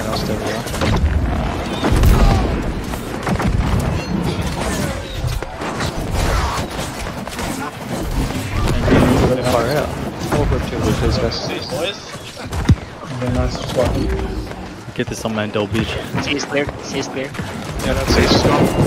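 Weapons clash and strike in a fierce fight.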